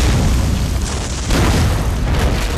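An explosion booms loudly.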